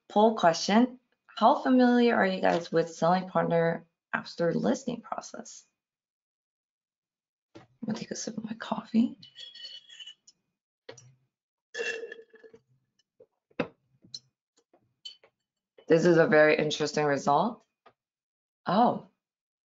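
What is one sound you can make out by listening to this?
A young woman speaks calmly through a microphone in an online call, pausing now and then.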